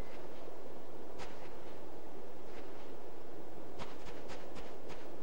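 Wind blows steadily.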